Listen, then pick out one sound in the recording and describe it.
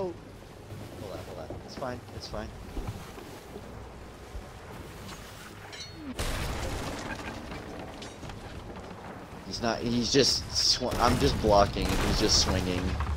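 Waves wash against a wooden ship.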